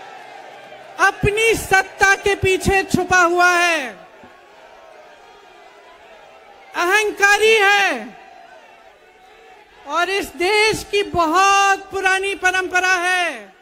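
A woman speaks forcefully into a microphone, heard through loudspeakers outdoors.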